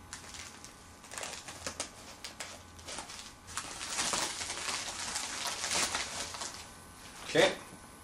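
Plastic packaging rustles and tears as it is cut open.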